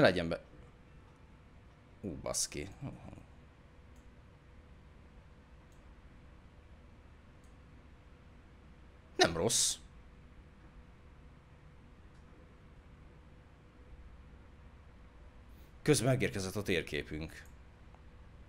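A man speaks calmly into a close microphone in short bursts.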